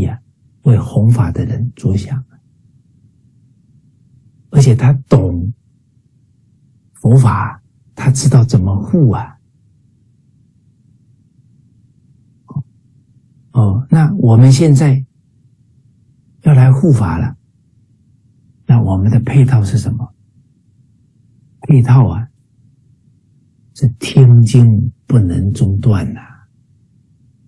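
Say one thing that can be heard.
A middle-aged man speaks with animation, close to the microphone, in short bursts with pauses, as if over an online call.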